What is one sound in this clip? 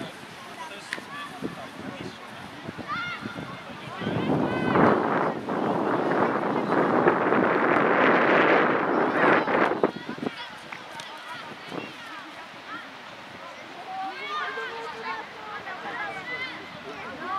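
Young girls shout and call to each other across an open field.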